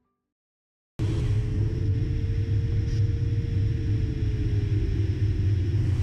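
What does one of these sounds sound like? Air rushes steadily past a glider's canopy.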